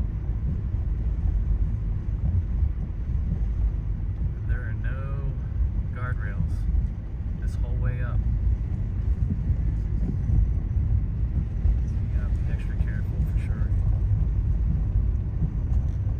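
Tyres rumble low on the road.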